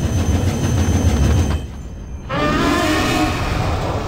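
A monstrous creature lets out a loud, deep roar.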